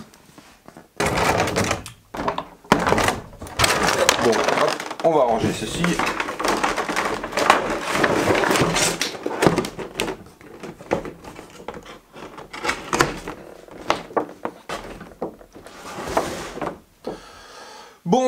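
Cardboard and plastic packaging rustles and scrapes as a man handles a box.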